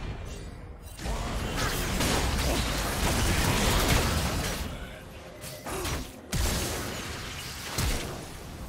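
Magic spells whoosh and crackle in a fast video game fight.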